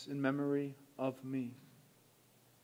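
A man speaks briefly through a microphone in an echoing room.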